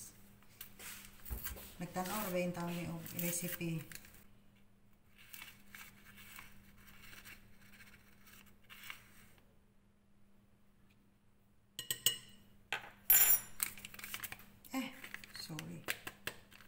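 A paper packet crinkles and rustles in someone's hands.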